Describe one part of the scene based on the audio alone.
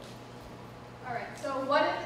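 A second young woman speaks through a microphone in a large hall.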